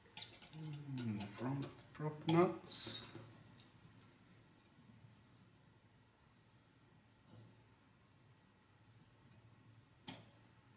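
A small screwdriver turns screws with faint clicks.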